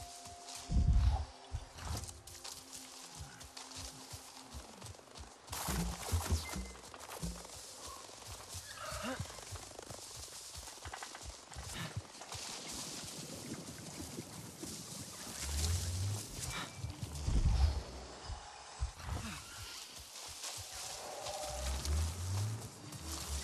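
Heavy footsteps thud on soft ground.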